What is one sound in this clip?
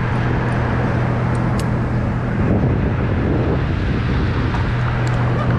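A climbing rope rubs and clicks through metal gear.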